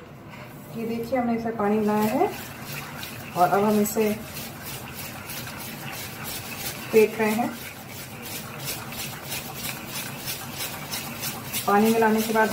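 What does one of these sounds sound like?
Hands squelch through soft butter in a metal bowl.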